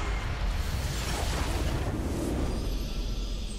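A crystal explodes with a loud, rushing magical burst.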